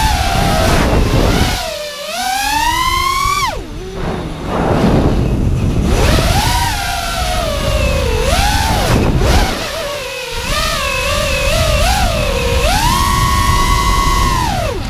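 A small drone's motors whine loudly, rising and falling in pitch as it speeds and swoops.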